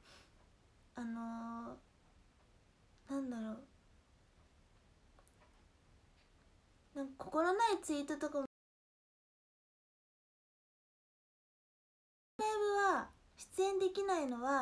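A young woman speaks close to a microphone in short, lively bursts.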